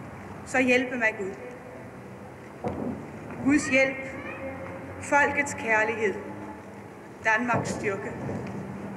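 A woman speaks slowly and formally through a loudspeaker outdoors, her words echoing.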